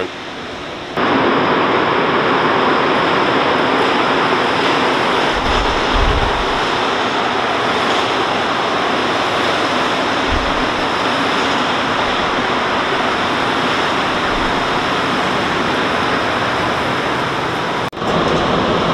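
A subway train rumbles into a station and roars past.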